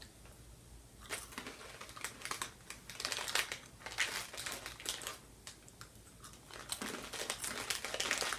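A snack bag crinkles.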